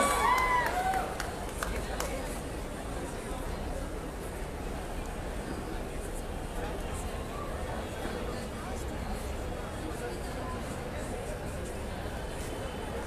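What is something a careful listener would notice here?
A crowd murmurs and cheers loudly outdoors.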